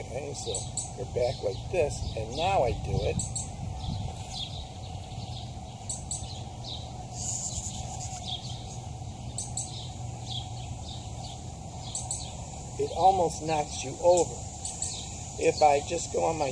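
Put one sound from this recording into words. A man sings in short melodic phrases nearby outdoors.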